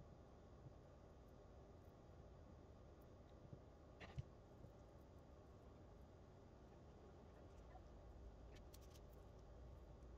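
A swab brushes lightly against a surface.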